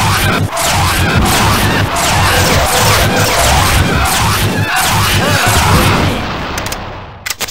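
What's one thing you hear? A heavy gun fires in a rapid, loud stream.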